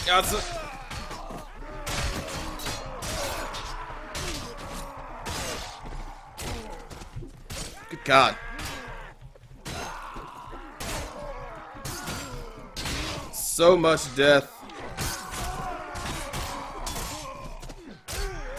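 Swords clash and clang repeatedly.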